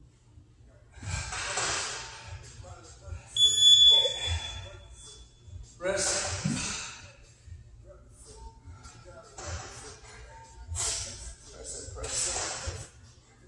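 A man pants heavily, catching his breath.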